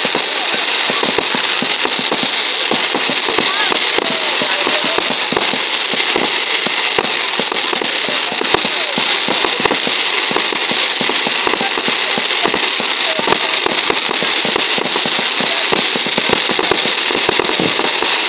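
A firework fountain hisses and roars steadily.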